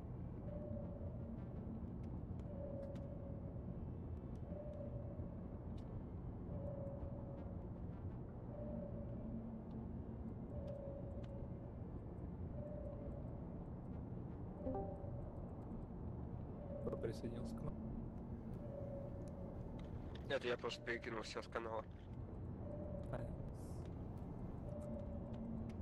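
A sonar pings at a steady pace, about every two seconds.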